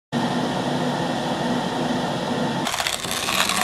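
A kettle rumbles and hisses as the water boils.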